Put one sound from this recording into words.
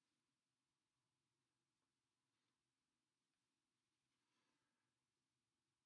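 A makeup brush softly brushes across skin.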